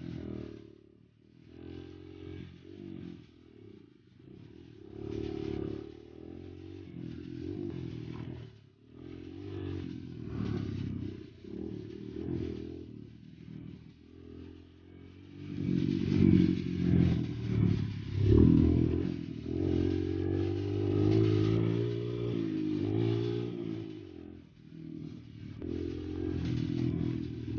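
A dirt bike engine runs close by, revving up and down as it rides over a bumpy track.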